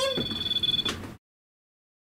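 A handheld device beeps with a high tone.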